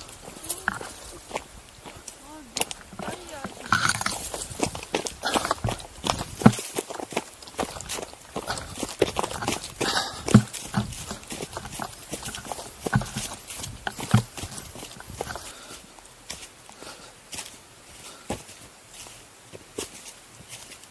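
Footsteps crunch on dry leaves and brush.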